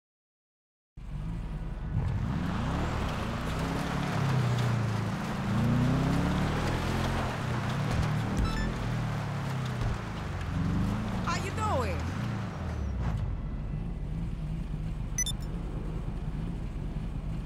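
A car engine revs and roars as it drives.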